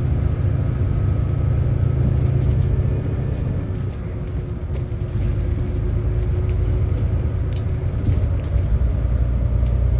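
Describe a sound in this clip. A bus interior rattles and clicks over the road.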